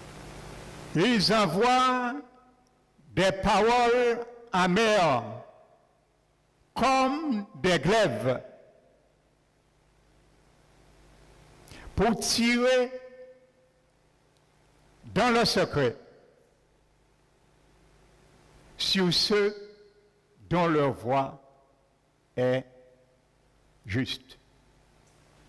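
A man preaches with animation through a microphone, in short bursts with pauses.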